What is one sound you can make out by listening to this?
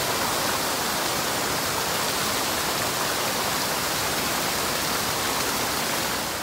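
A small waterfall splashes and rushes over a rock ledge into a shallow pool.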